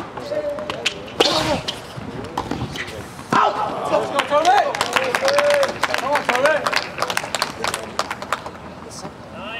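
A tennis ball bounces with quick thuds on a hard court.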